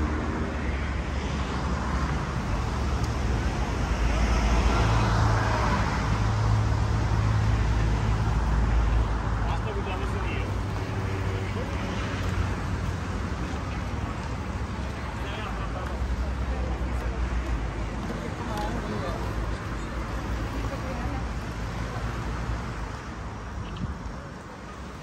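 Outdoors, wind gusts and rumbles against the microphone.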